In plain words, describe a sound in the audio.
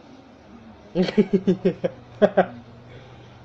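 A young man laughs loudly up close.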